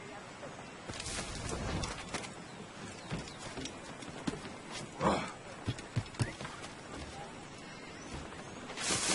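Footsteps thud and creak on a wooden roof.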